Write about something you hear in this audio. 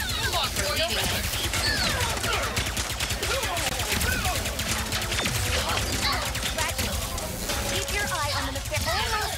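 Blasters fire in rapid bursts.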